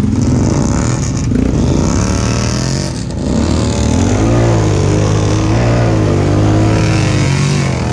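Mud splashes and squelches under tyres.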